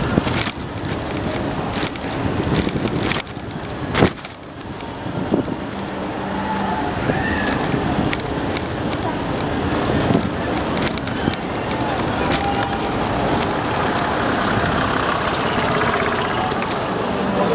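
Wind rushes past a moving bicycle outdoors.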